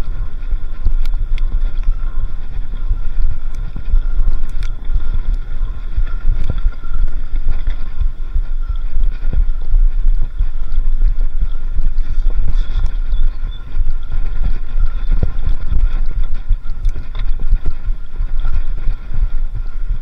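A bicycle frame rattles and clicks over bumps.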